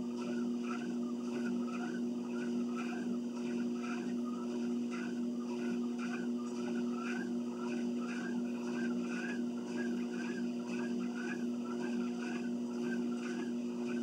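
Footsteps thud on a moving treadmill belt.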